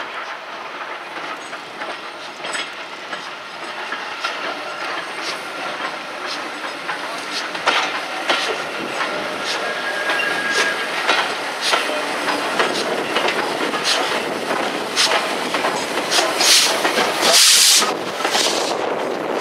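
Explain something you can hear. Train wheels clank and rumble over the rail joints.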